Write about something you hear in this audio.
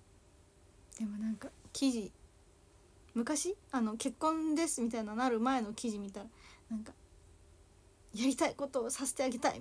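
A young woman speaks softly and casually close to a microphone.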